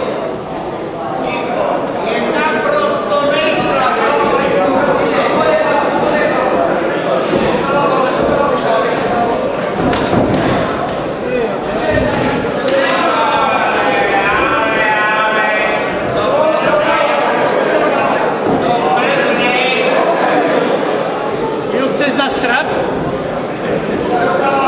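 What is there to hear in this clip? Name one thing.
A crowd of spectators shouts and cheers throughout, echoing in a hall.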